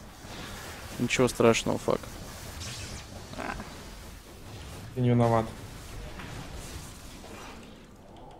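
Spell effects zap and crackle in a video game.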